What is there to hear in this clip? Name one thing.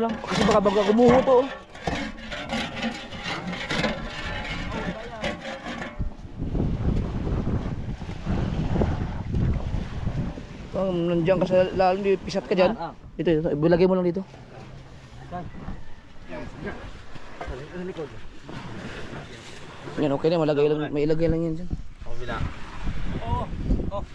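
Hands scrape and dig in sand.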